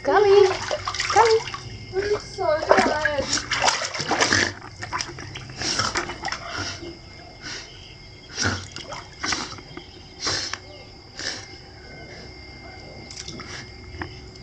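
Water splashes and sloshes as a dog paddles and tugs.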